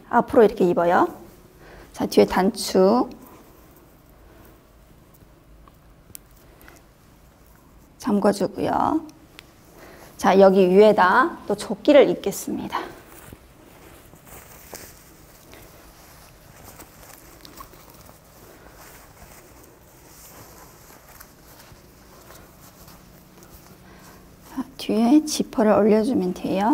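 A woman speaks calmly and clearly, close by, in short phrases.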